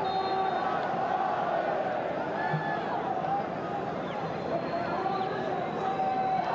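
A large stadium crowd chants and cheers loudly and steadily.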